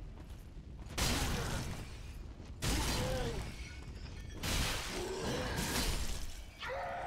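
A heavy blade strikes with sharp thuds.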